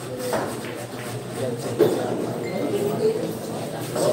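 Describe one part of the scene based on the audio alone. Pool balls click together sharply.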